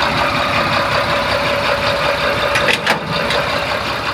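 A truck engine idles close by.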